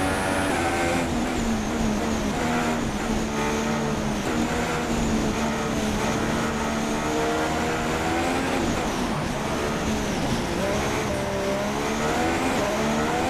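A racing car engine drops in pitch as the car brakes and shifts down.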